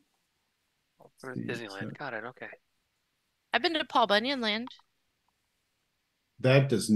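A man talks animatedly over an online call, in short bursts.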